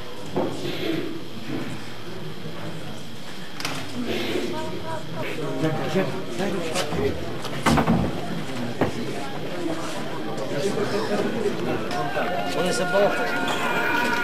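A crowd of men and women murmur and chatter nearby.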